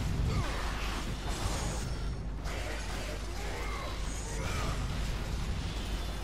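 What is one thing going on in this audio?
Blades slash and strike bodies with wet hits.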